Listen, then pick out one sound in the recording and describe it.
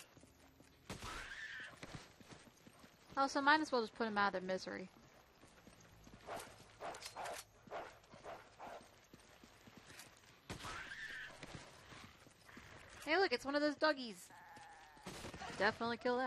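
A gun fires sharp shots in short bursts.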